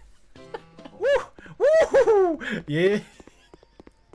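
A young man speaks with animation, his voice rising and falling sharply.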